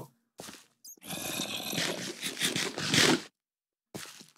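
A character munches food with crunchy bites.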